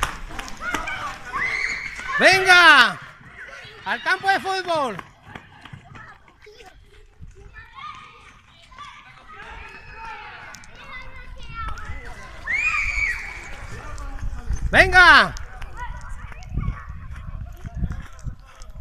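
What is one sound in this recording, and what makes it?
Children chatter and call out far off.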